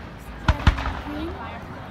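A firework rocket whistles as it rises.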